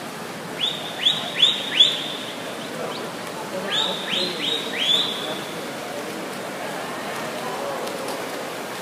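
Swimmers splash through the water doing freestyle in an echoing indoor pool hall.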